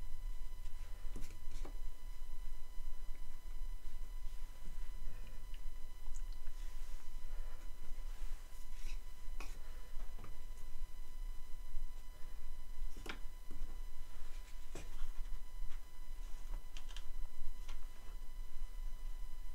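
Small wooden blocks click and knock as they are set down on a board.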